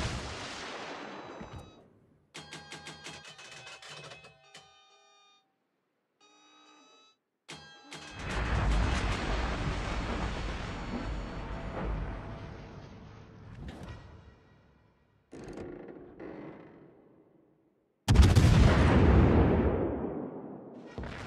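Heavy ship guns fire with loud booms that roll away.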